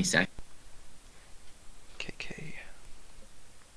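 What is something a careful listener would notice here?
A young man speaks calmly and closely into a microphone.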